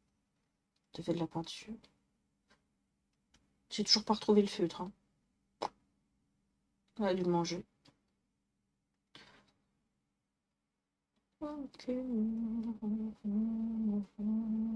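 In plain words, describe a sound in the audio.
A young woman speaks with animation into a close microphone, in short bursts.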